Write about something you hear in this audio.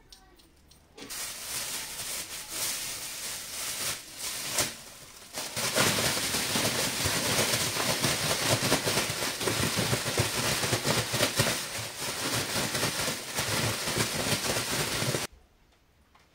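A plastic bag rustles and crinkles loudly as it is shaken.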